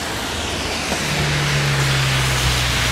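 A car drives past on a wet road with a low hum.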